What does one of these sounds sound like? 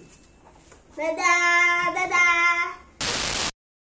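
A young boy calls out cheerfully.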